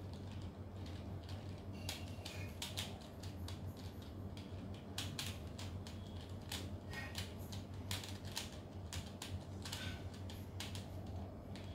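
The layers of a plastic puzzle cube click and clack as they are turned rapidly.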